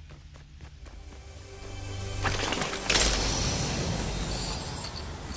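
A treasure chest hums and bursts open with a bright shimmer.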